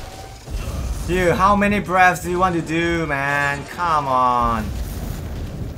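A huge beast lets out a long, loud, wavering roar.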